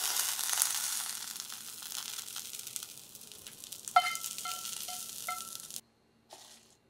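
Chopsticks scrape food from a frying pan onto a plate.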